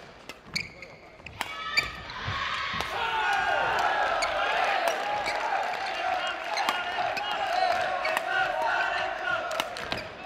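Shuttlecocks are struck sharply with rackets in an echoing hall.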